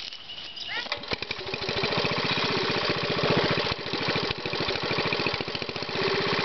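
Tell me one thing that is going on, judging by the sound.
A small petrol engine sputters to life and chugs steadily at idle.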